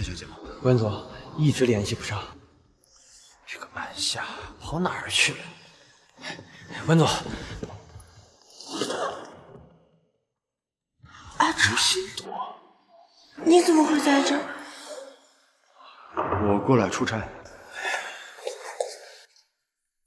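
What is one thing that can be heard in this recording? Young men talk calmly, close by.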